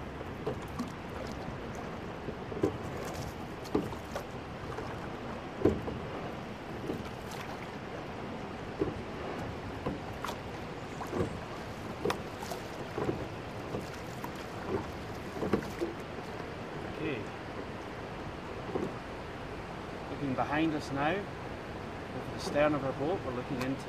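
Oars knock rhythmically in their locks as a boat is rowed.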